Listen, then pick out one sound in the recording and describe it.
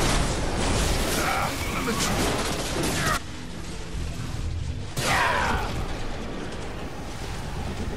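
A creature shrieks and snarls during a fight.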